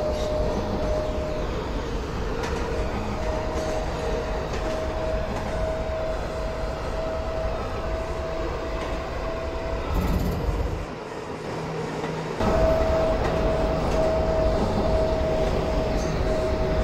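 A train motor whines with a steady, pulsing hum.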